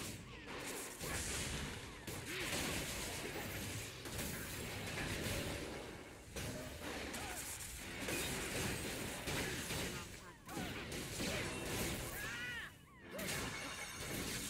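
Magic spells burst and crackle in a fast fight.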